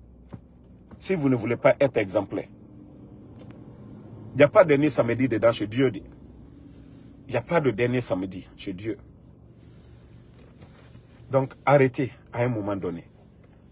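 A man speaks close to a microphone, calmly, in short bursts with pauses.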